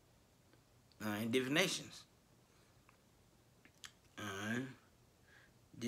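A man speaks close up, calmly, in short phrases.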